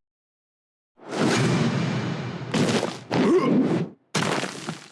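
Blades swish and clash in a fight.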